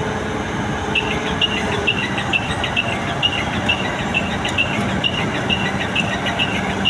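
A crane's warning beeper sounds in quick, even beeps.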